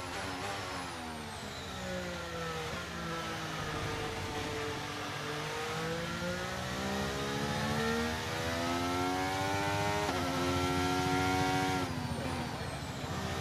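A racing car engine hums steadily, its pitch rising and falling as it shifts gears.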